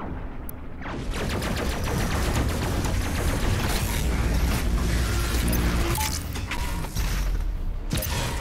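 A heavy gun fires in a rapid, rattling stream of shots.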